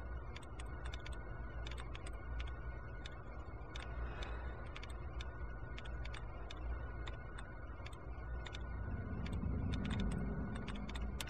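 A computer terminal ticks in quick, uneven clicks.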